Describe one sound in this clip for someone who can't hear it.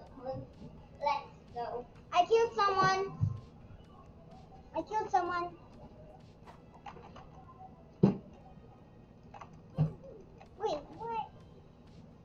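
A young girl talks with excitement, close to a microphone.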